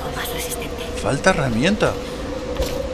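A young woman grunts with effort.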